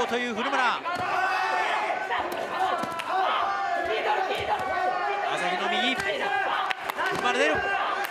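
Kicks and punches thud against a fighter's body.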